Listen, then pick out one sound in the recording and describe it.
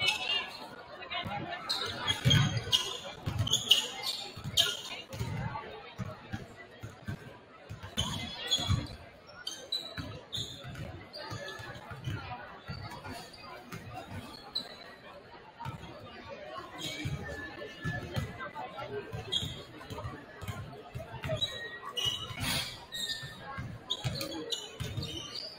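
Basketballs bounce on a wooden court, echoing in a large hall.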